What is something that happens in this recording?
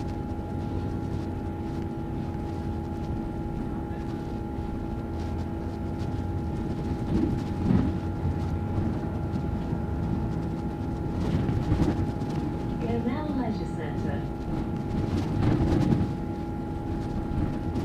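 Passing cars swoosh by on the road.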